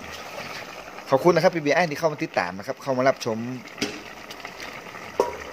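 A pot of soup simmers and bubbles softly.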